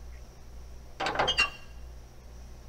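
A brief electronic chime rings out.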